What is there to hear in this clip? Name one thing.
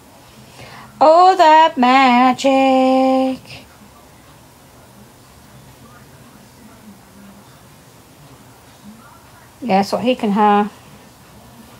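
A middle-aged woman speaks close to a phone microphone in short, drawn-out bursts.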